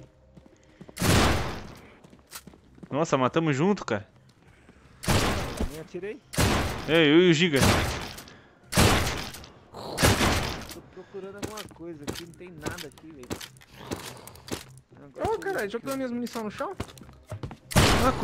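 A rifle fires loud single shots that echo.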